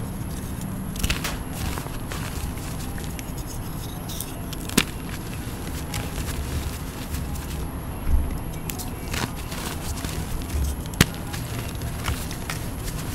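Small objects tap and knock together in a hand.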